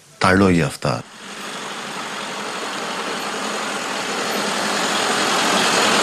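A car approaches.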